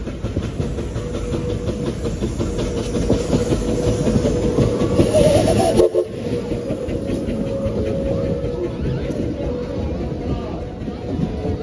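A steam train's wheels clatter and squeal on the rails.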